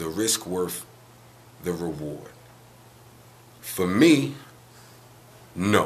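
A man speaks calmly and close to the microphone, in short phrases with pauses.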